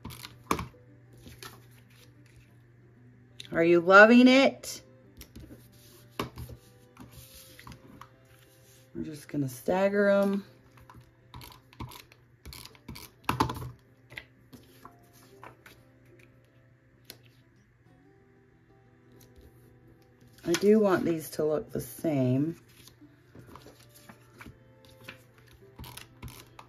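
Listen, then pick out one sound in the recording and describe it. Paper rustles and slides as it is handled.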